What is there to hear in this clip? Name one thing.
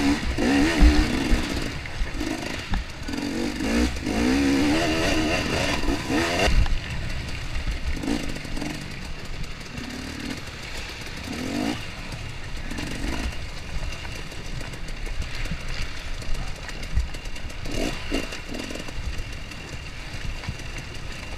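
A dirt bike engine revs and sputters up close.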